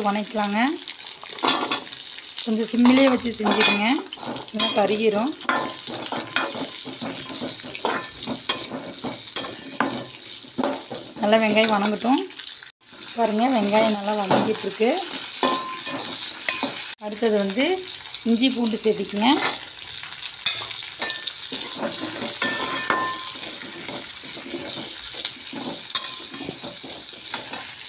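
A metal spoon scrapes and clinks against a frying pan.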